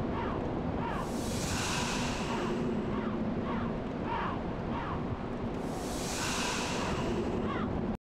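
A magic spell shimmers and whooshes softly.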